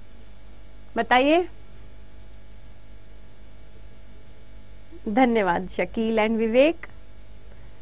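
A young woman speaks calmly into a microphone in short bursts.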